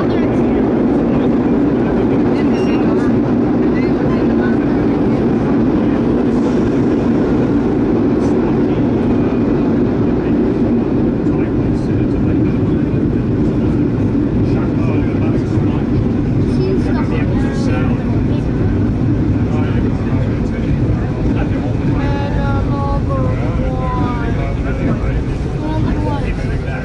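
A subway train rumbles loudly through a tunnel.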